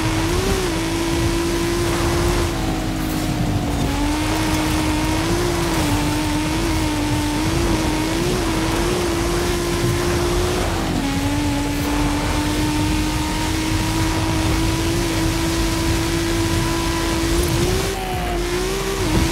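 A car engine roars steadily at high revs, its pitch dipping and rising with gear changes.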